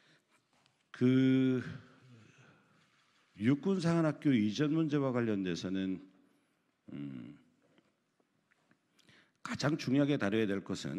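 A man speaks formally into a microphone, heard through a loudspeaker in an echoing room.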